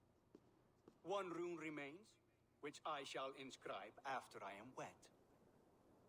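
A younger man answers calmly close by.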